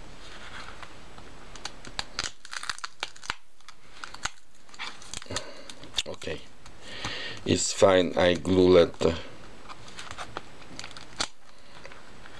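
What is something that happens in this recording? Stiff paper pages rustle as they are turned.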